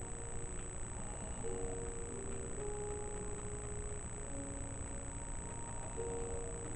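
Soft game music with long held notes plays from a television speaker.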